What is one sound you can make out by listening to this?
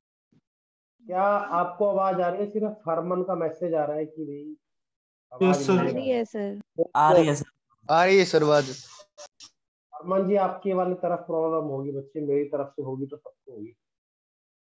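A man speaks calmly, heard through a microphone on an online call.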